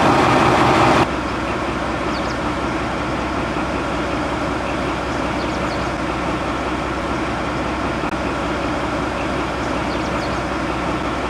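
A diesel locomotive idles steadily at a distance outdoors.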